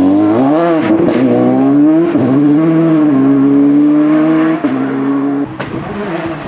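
A rally car accelerates away at full throttle, shifting up through the gears.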